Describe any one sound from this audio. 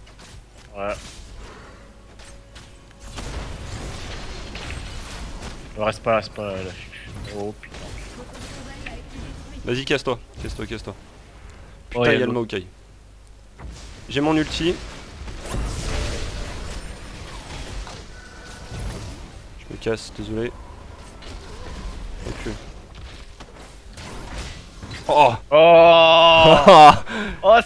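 Game spell effects crackle and whoosh in a fight.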